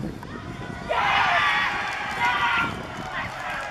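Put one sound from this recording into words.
A small crowd cheers and shouts loudly.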